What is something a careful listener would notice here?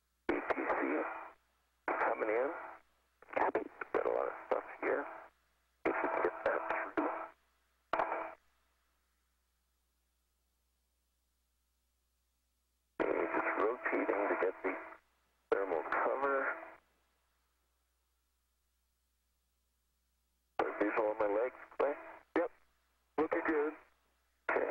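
A man speaks calmly over a crackly radio link, in short bursts.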